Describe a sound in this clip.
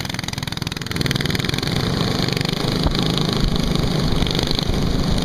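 Small go-kart engines buzz and rattle loudly nearby.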